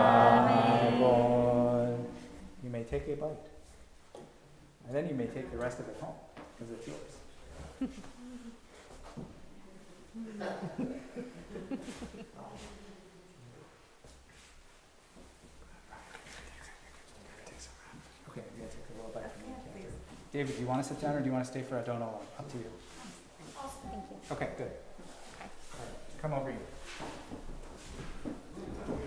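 A man speaks calmly through a microphone in a reverberant hall.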